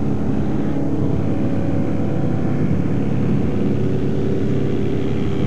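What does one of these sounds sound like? A small plane's propeller engine drones loudly and steadily.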